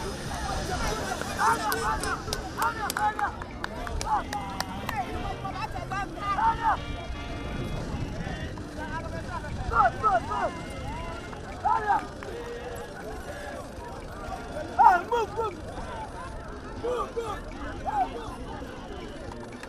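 Young boys shout to each other in the distance.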